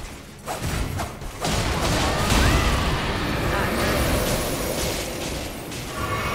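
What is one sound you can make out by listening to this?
Swords clash with heavy metallic impacts.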